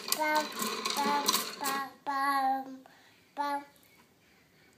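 A young boy talks in a high, sing-song voice close by.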